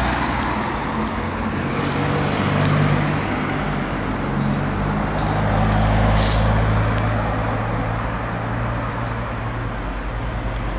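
A car engine hums steadily while driving along a town street.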